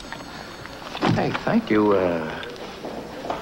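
A young man answers in a calm voice.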